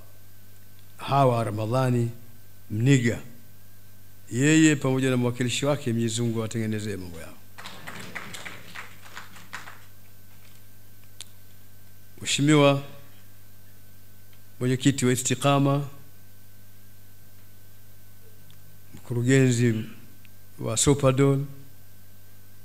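An elderly man reads out slowly and calmly into a microphone, in short phrases with pauses.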